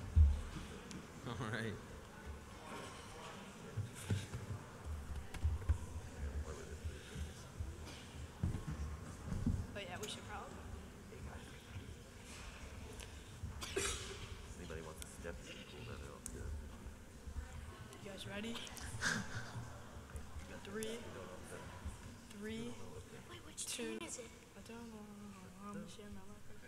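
A man speaks warmly into a microphone in a reverberant hall.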